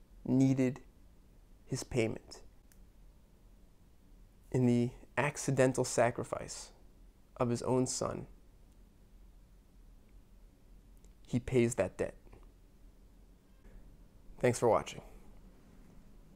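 A young man speaks calmly in short phrases, close to a microphone.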